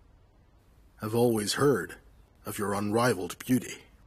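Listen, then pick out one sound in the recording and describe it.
A man speaks firmly close by.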